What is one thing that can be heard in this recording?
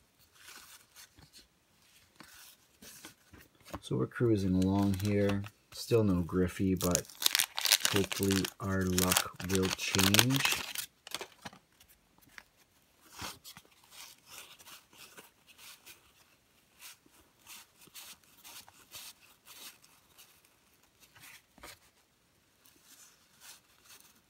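Trading cards flick and rustle as they are shuffled through by hand.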